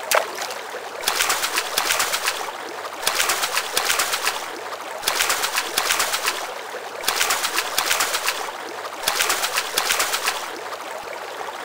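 A fishing reel whirs in quick repeated bursts.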